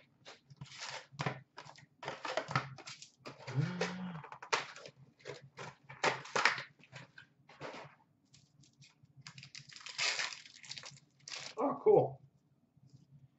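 Plastic-wrapped card packs rustle and tap up close.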